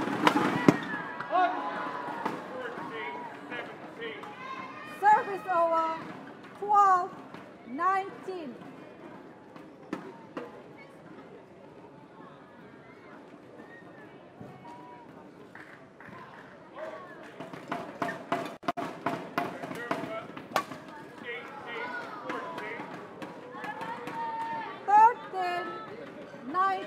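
Shoes squeak on a hard court floor.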